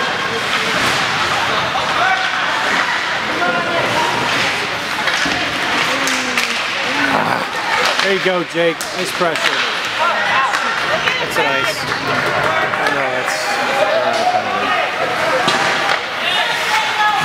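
Spectators chatter in an echoing ice arena.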